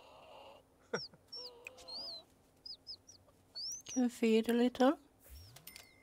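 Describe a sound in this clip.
A chick peeps in short, high chirps.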